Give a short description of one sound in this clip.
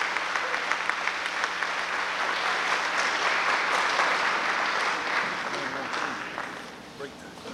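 A crowd cheers and shouts loudly.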